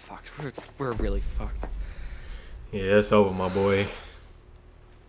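A second young man asks a question in a tense voice.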